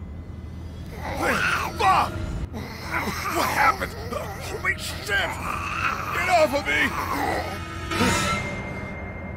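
A man shouts in alarm, then speaks urgently.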